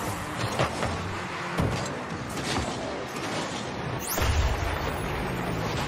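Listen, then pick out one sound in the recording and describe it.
A video game car's engine roars with a rushing boost.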